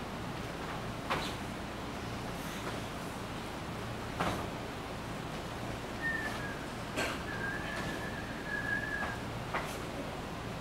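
Bare feet thump and slide on a wooden floor.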